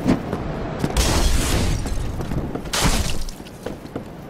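A spear slashes through the air and strikes flesh.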